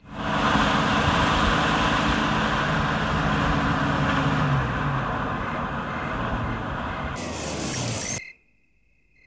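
A car engine hums as a car approaches and pulls up.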